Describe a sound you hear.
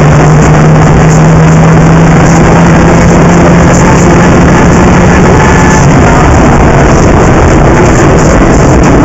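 A car engine roars loudly as the car drives fast.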